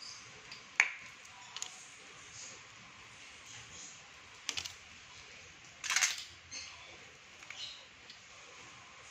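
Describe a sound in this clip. Small clicks and rustles come from hands handling wires close by.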